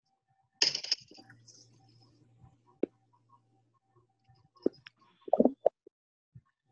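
A plastic crate knocks and rattles against a ramp.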